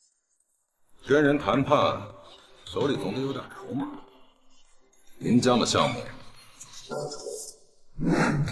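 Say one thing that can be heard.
A man speaks calmly and firmly, close by.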